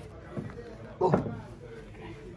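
A heavy box thuds down onto a stand.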